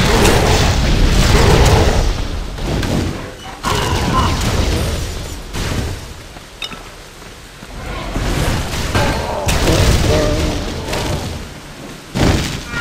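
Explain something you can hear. Fire spells roar and crackle in bursts.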